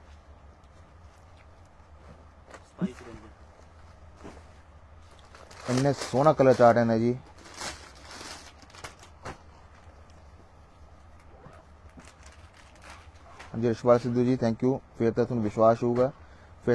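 Fabric rustles softly as it is handled.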